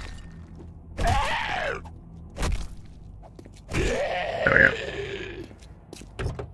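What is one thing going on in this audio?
A zombie growls and snarls loudly.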